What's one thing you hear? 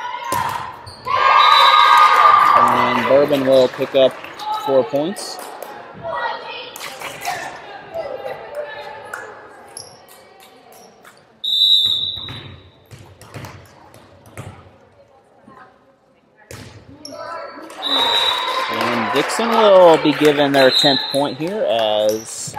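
Players' shoes squeak on the hardwood floor.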